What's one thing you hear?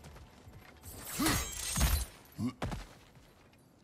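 A heavy blow crashes loudly against stone.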